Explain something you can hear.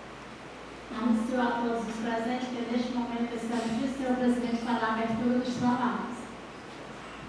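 A woman sings through a microphone.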